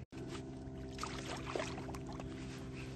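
Water splashes as a fish is released from a net.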